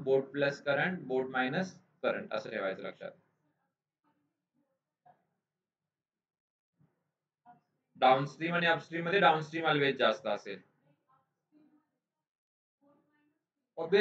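A man explains calmly into a close microphone, speaking in bursts with pauses.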